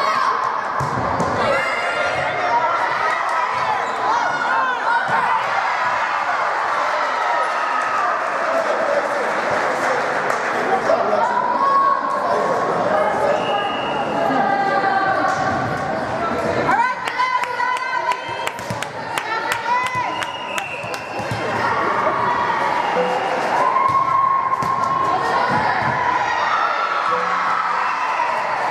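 Young girls shout and cheer in an echoing gym.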